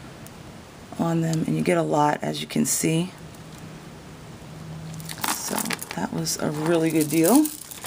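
Beads click softly against each other as they are handled.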